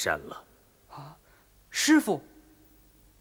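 A young man exclaims in surprise.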